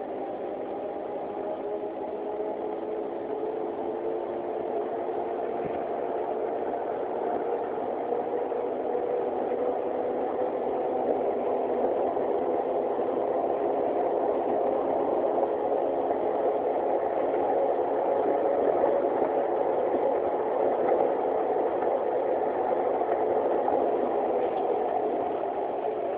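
A bus engine hums steadily and grows louder as the bus speeds up.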